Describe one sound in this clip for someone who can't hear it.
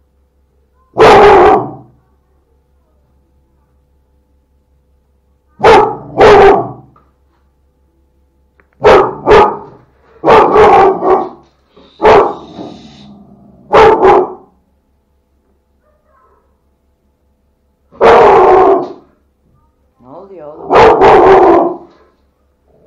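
A dog barks loudly nearby in short bursts.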